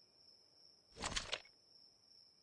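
Items transfer in a game with a brief rattling swish.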